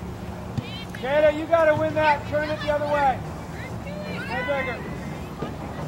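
Young women shout to each other from a distance.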